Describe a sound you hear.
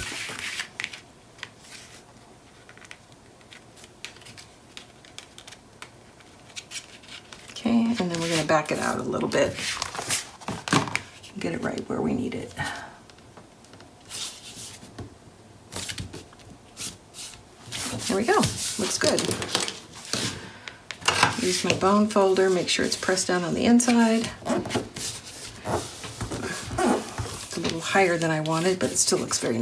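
Stiff paper rustles and slides across a mat.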